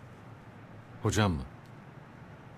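A man says a few words quietly, close by.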